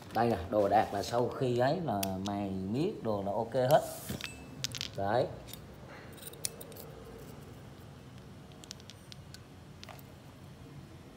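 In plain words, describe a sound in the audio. Metal parts clink and tap together as they are handled.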